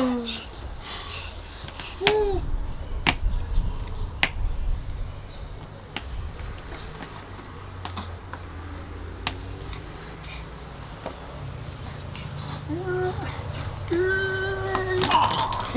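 A young man speaks softly and playfully close by.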